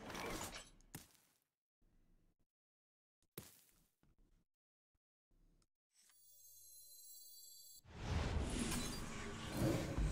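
A man talks with animation into a close microphone, in bursts and pauses.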